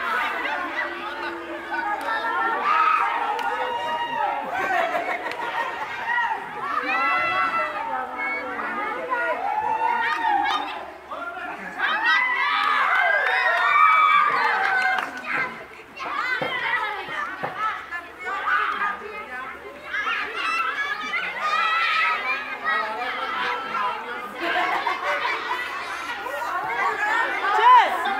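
A crowd of children and adults shouts and cheers outdoors.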